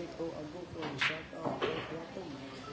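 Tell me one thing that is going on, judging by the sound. Billiard balls click sharply together on a table.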